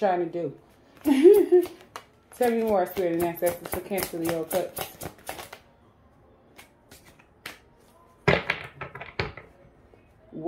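Playing cards are shuffled by hand, flicking and slapping together.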